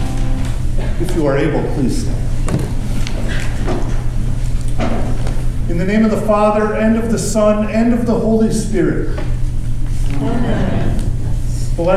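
A man speaks calmly in a room with a slight echo.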